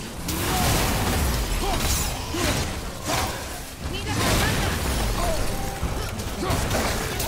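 Icy magical blasts burst and crackle with heavy booming impacts.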